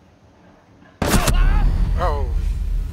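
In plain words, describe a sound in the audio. A loud gunshot blasts and rings out.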